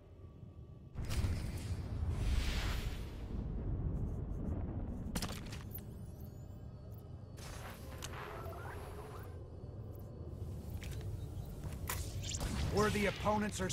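Energy weapons crackle and boom in a fight.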